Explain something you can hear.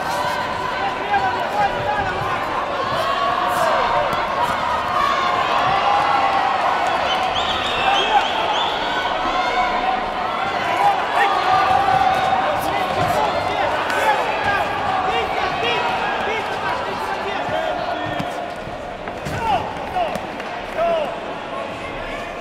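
Boxers' gloves thud against each other.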